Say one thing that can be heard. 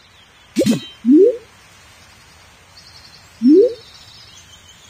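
Short rising electronic blips sound as game messages pop up.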